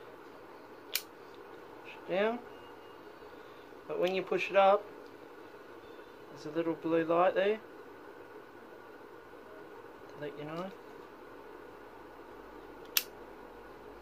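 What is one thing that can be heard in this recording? A small lighter clicks sharply.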